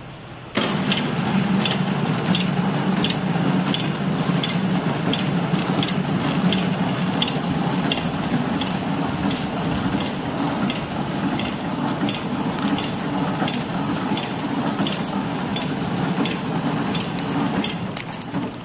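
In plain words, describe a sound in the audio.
A packaging machine hums and whirs steadily.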